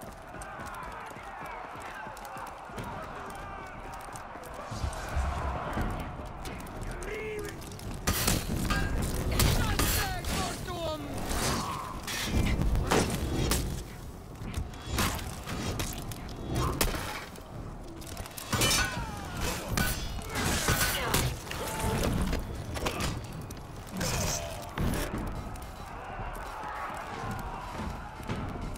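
Armoured fighters run with heavy footsteps.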